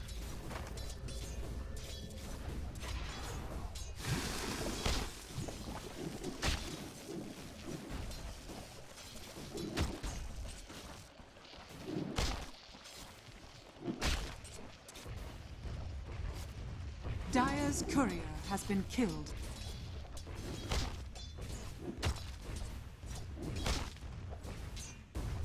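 Game combat sounds clash and thud with sudden hits and spell blasts.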